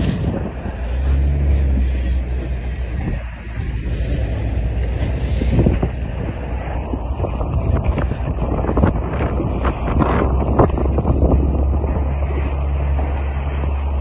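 A boat motor drones low and steady.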